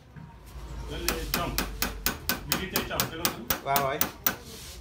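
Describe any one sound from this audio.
A small hammer taps metal in quick, regular strokes.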